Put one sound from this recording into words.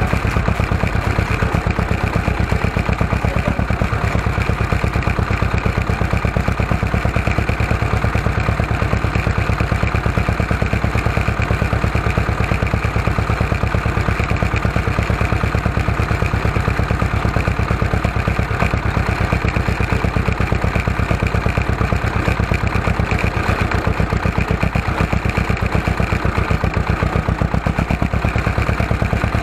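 A tractor's diesel engine chugs steadily up close.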